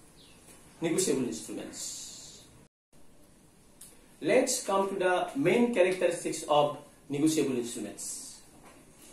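A middle-aged man speaks calmly and clearly close by, as if explaining.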